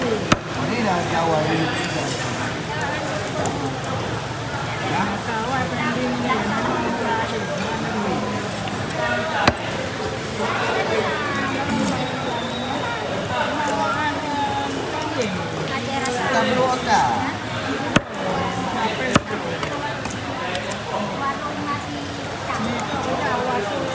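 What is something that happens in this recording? A knife slices wetly through raw fish.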